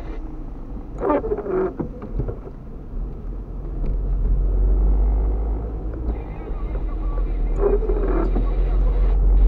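A windshield wiper squeaks as it sweeps across the glass.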